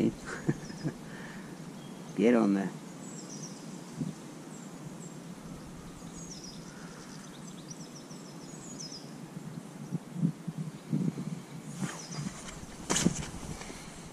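Fingers fiddle softly with bait close by.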